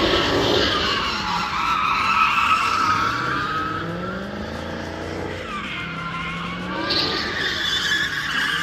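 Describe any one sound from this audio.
Tyres squeal loudly on pavement.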